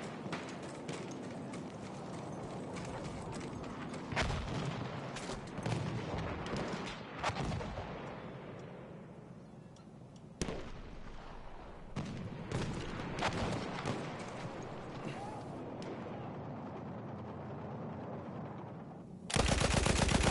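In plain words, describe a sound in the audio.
Distant gunshots crack now and then.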